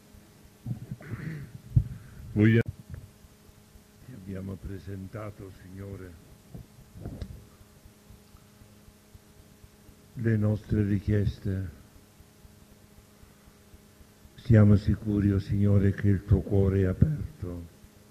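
An elderly man speaks calmly, in pauses.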